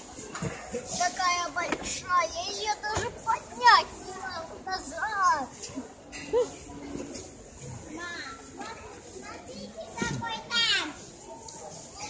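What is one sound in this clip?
Young children talk and squeal excitedly close by.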